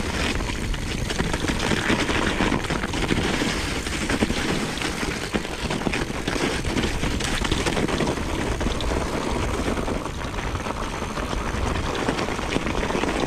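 A bicycle frame rattles over bumps.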